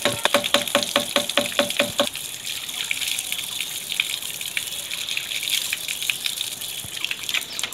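Water gushes and splashes onto the ground.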